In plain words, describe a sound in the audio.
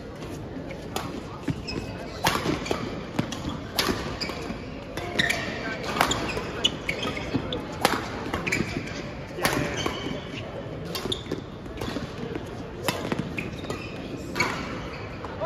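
Badminton rackets smack a shuttlecock in a rally, echoing in a large hall.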